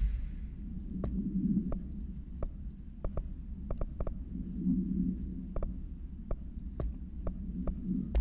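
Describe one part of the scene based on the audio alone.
Short, sharp menu clicks tick now and then.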